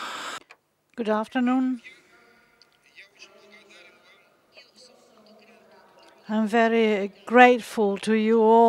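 An elderly man speaks calmly and slowly through a microphone.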